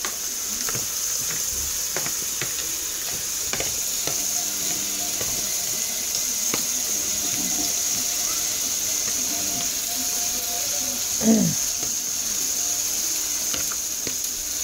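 A fork tosses salad, with light clicks against a plastic bowl.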